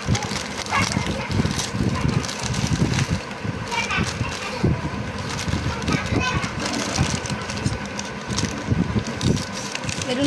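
Scissors snip through a crinkly plastic wrapper.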